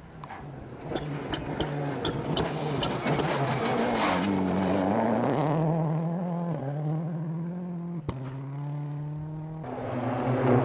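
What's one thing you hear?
A rally car engine roars and revs as the car speeds past.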